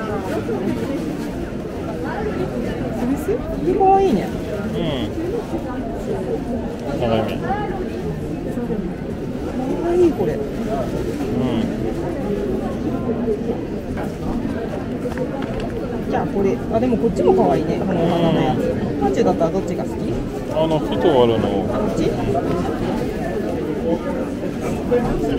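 Many people chatter at once, close by and further off.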